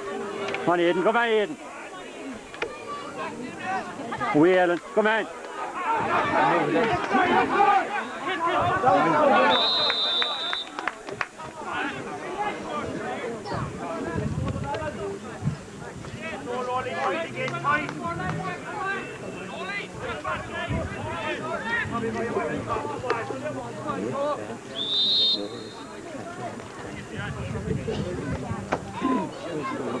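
Men talk nearby among a crowd.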